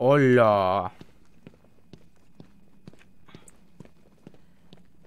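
Footsteps tread softly on a stone floor.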